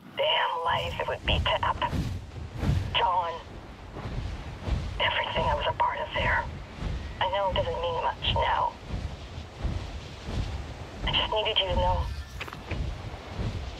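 Wind rushes past steadily during flight.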